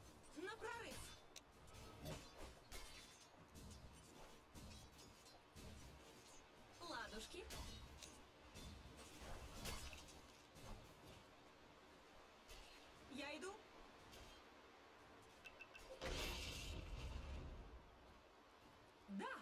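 Game spells whoosh and crackle with sharp magical impacts.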